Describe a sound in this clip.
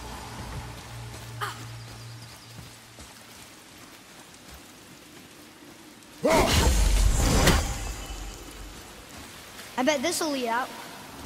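Footsteps crunch on a rocky floor.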